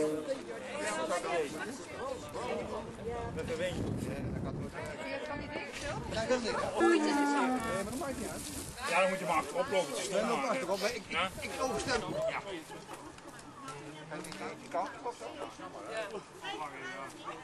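Several men talk and chatter outdoors nearby.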